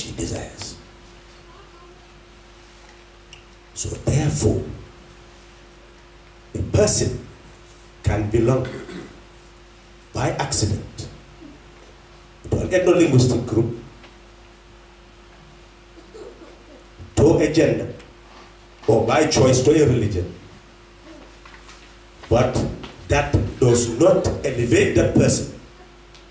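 An elderly man speaks slowly in short bursts through a microphone and loudspeakers.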